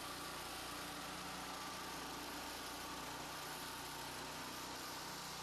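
A petrol engine drones steadily.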